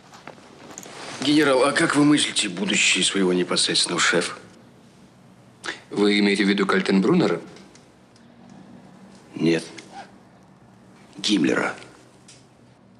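Another middle-aged man answers in a low, serious voice.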